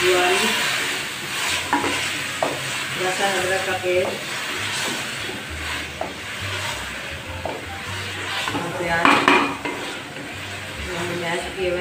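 A wooden spoon scrapes and stirs thick food in a metal pot.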